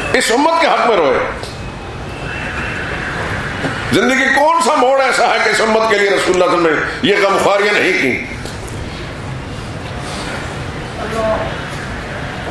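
A middle-aged man speaks slowly and earnestly through a microphone, in bursts with pauses, in an echoing hall.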